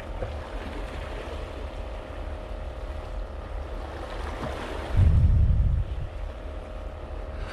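Water laps gently against a stone edge.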